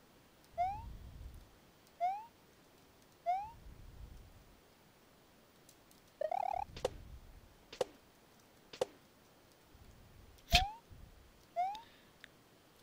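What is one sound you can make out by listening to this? A cartoon jump sound effect chirps upward again and again.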